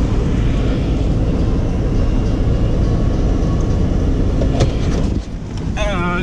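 A car engine rumbles loudly while driving.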